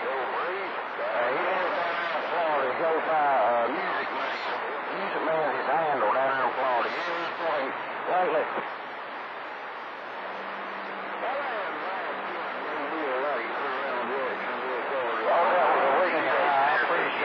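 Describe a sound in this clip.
A man talks through a radio receiver, thin and crackly.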